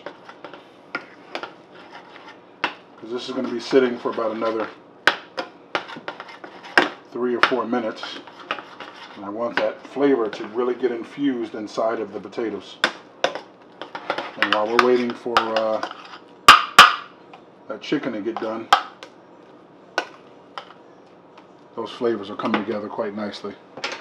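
A fork scrapes and clinks against a metal pot.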